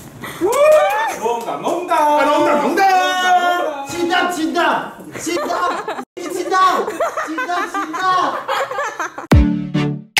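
A group of people laugh and clap.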